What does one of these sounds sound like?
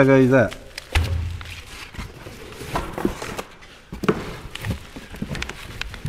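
Cardboard rustles as a box is handled.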